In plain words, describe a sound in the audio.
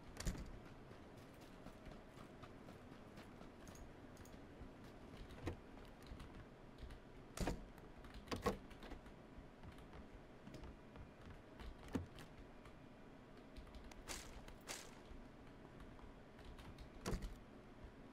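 Footsteps crunch and thud steadily on the ground and floorboards.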